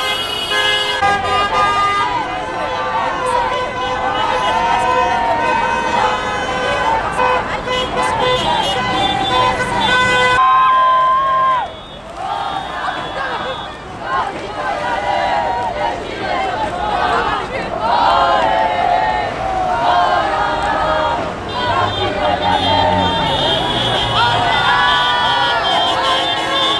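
A crowd of men and women chants and sings loudly outdoors.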